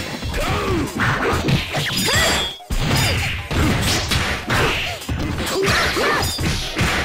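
Sharp hits and slashes land repeatedly in a fast fight.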